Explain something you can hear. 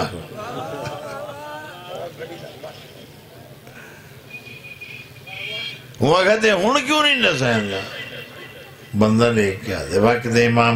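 A man recites with strong emotion into a microphone, heard through loudspeakers with echo.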